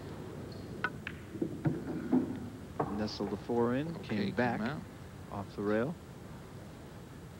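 Billiard balls click together and roll across the table.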